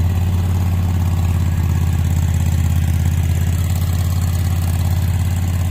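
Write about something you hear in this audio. A lawn mower engine idles steadily nearby.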